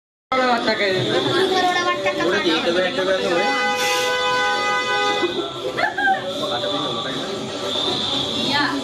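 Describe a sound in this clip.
A crowd of men and women talks and chatters nearby.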